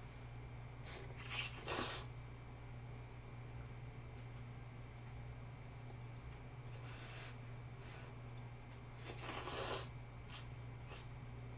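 A young woman slurps noodles loudly, close by.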